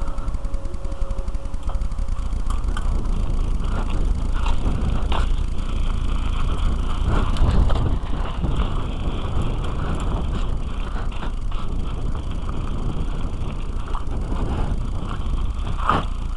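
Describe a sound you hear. Wind rumbles loudly against the microphone outdoors.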